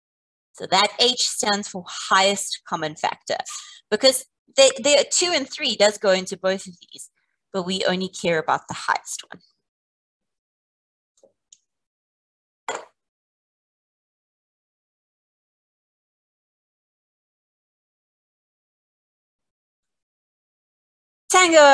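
A woman speaks calmly and clearly through a microphone.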